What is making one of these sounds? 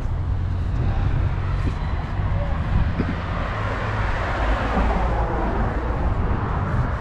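A car drives past on the road nearby.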